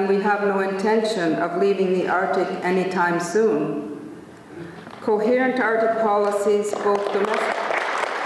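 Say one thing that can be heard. A middle-aged woman speaks calmly into a microphone in a large hall.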